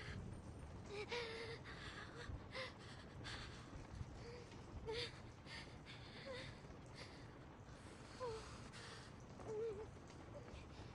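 A young girl groans and whimpers in pain close by.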